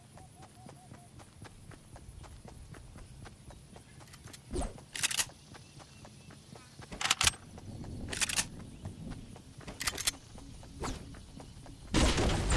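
Quick footsteps thud on grass as a game character runs.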